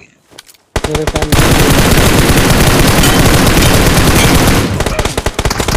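Rifle gunfire rattles in a video game.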